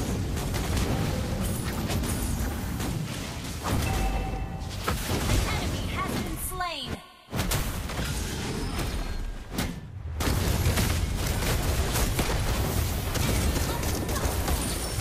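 Fiery blasts and battle effects crash and boom in quick bursts.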